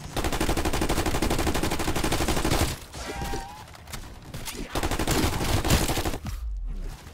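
Rapid gunfire blasts loudly.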